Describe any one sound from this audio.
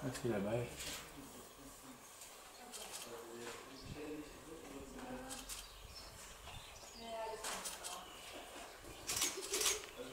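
Young herons give harsh, chattering begging calls close by.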